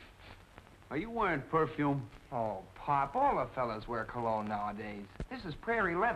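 A middle-aged man speaks gruffly, close by.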